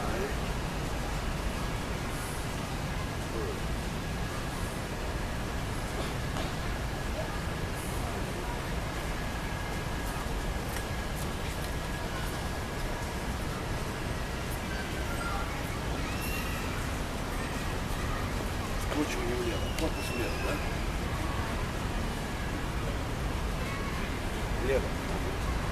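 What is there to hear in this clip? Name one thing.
Shoes shuffle softly on pavement.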